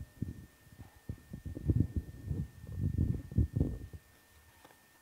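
An elderly man speaks calmly through a microphone.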